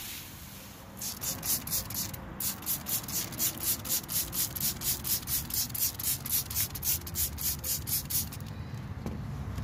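A hand sprayer squirts foam in quick rhythmic bursts.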